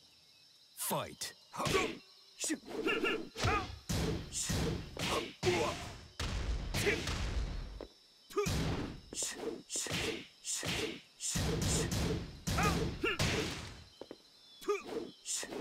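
Punches and kicks land with sharp thuds and smacks.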